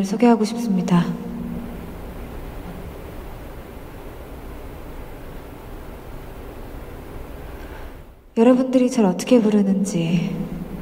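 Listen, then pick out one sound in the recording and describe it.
A young woman sings slowly into a microphone, heard through loudspeakers, pausing briefly between lines.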